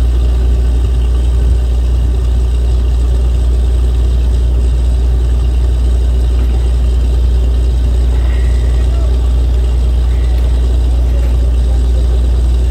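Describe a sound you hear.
A drilling rig's diesel engine drones loudly and steadily outdoors.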